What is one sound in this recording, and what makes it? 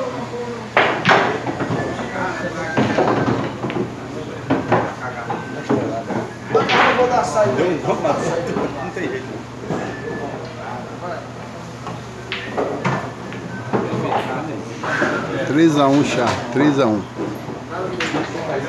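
Pool balls click against each other.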